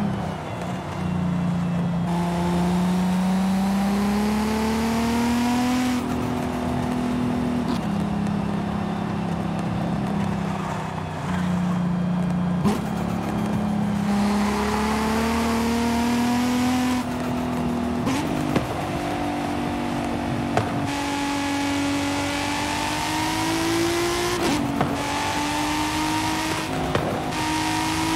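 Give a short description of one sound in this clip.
A sports car engine revs up and down.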